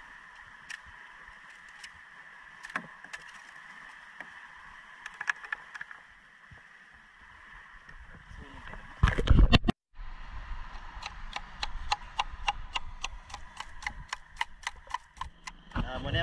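A wooden stick taps and scrapes against rock.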